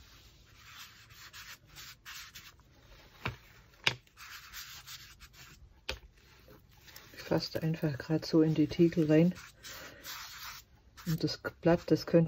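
A sponge dabs softly on paper.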